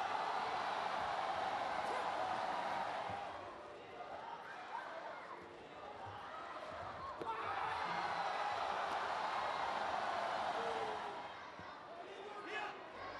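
A large crowd cheers loudly in an echoing arena.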